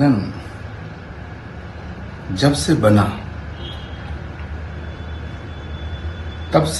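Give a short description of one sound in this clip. An elderly man speaks calmly and closely into a microphone, in short bursts with pauses.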